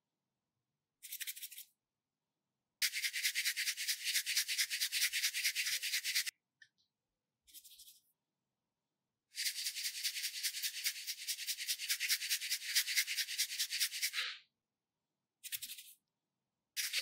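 A bottle shakes briefly.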